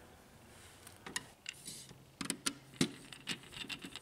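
A screwdriver scrapes and clicks against a metal frame.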